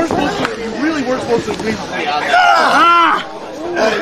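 A young man shouts with strain.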